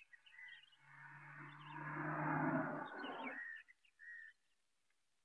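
A car engine hums as a car drives by.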